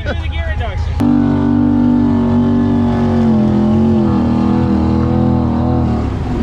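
An engine revs louder as a vehicle drives through water.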